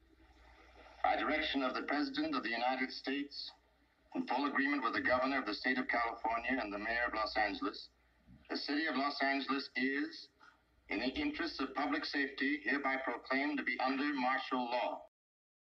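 A middle-aged man speaks gravely and steadily into a close microphone, with pauses between phrases.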